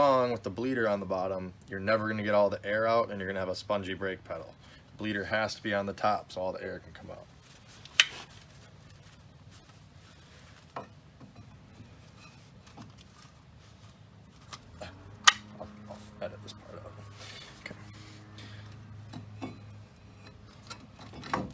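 Metal parts clink and knock as a brake caliper is handled.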